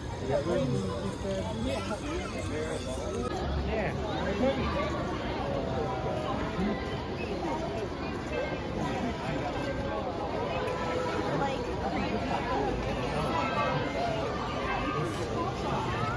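A crowd of adults and children chatters all around.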